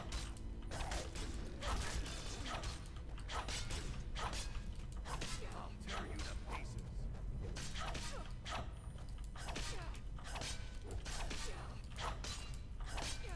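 Swords clash and strike armour again and again.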